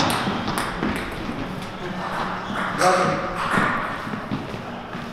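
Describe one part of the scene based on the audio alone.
A ping-pong ball clicks sharply against paddles and a table.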